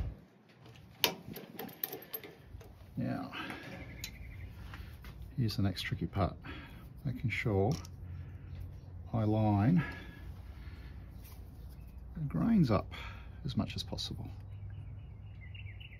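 Small metal and wooden parts click and tap together by hand.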